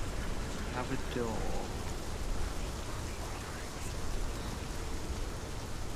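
A fire crackles and roars close by.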